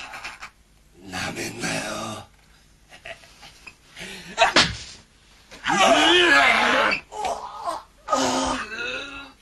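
A man speaks in a low, menacing voice up close.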